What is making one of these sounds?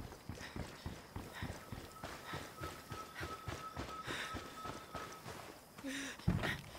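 Footsteps run quickly on a hard road.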